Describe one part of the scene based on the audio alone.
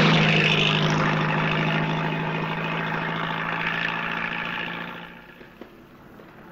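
A car engine hums steadily, then fades away.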